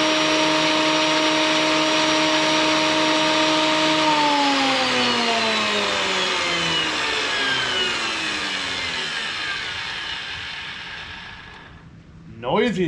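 An electric planer motor whines loudly, then winds down and stops.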